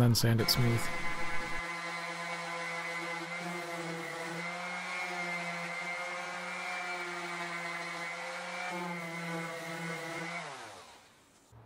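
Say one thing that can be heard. An electric sander whirs steadily against wood.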